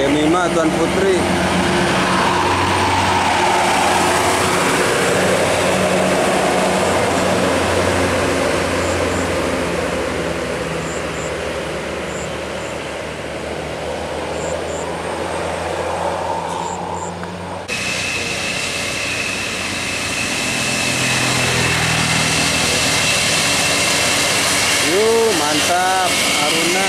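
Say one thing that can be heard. A bus engine rumbles loudly as the bus drives past and pulls away.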